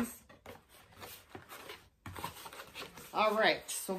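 Cardboard rustles and taps as a box is handled.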